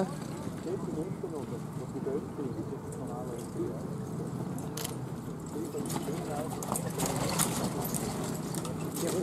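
Carriage wheels rumble over grass.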